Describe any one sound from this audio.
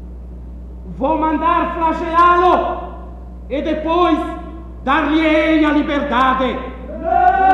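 A man speaks loudly and dramatically in an echoing hall.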